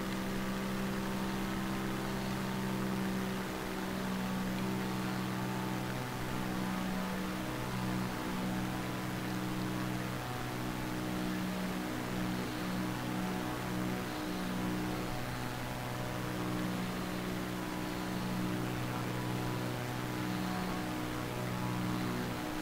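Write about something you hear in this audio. A propeller plane's engine drones steadily in flight.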